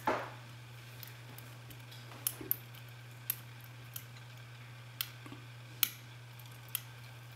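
Small metal parts click and tick as a tool works inside a lock cylinder.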